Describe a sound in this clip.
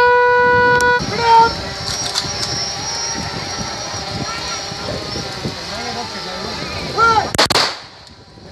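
A large crowd shouts and chants together outdoors.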